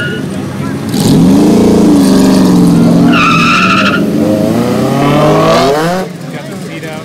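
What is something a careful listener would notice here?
A sports car's engine revs loudly and roars as it accelerates away.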